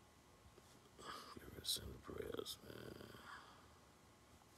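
A man speaks calmly and close up into a phone microphone, with pauses.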